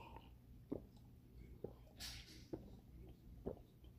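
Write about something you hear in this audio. A woman sips a drink close by.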